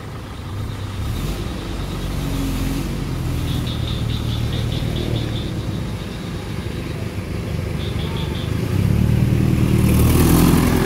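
A car engine idles nearby with a low rumble.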